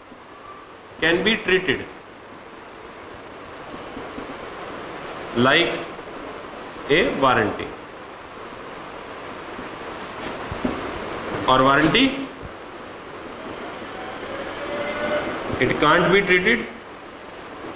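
A man speaks in short bursts, calmly explaining, close by.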